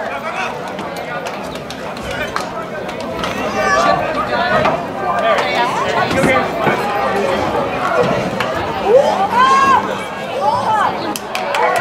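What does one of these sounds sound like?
Lacrosse sticks clack against each other.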